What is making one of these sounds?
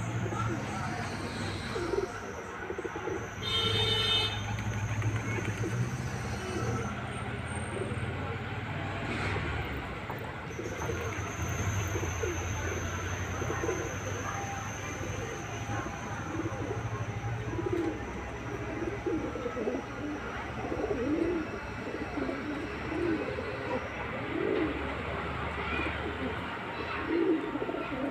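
Pigeons coo softly close by.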